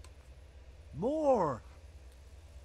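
An older man exclaims a short word.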